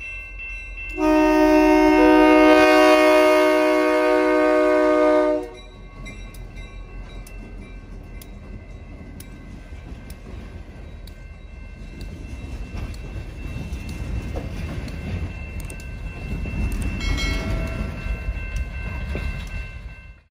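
A freight train rumbles and clatters past on the rails.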